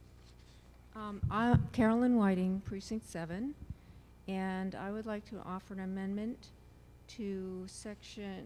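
An elderly woman reads aloud into a microphone.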